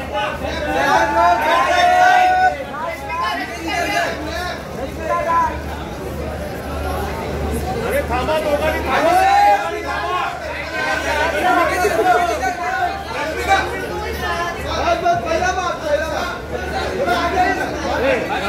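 Several men shout and call out over each other close by.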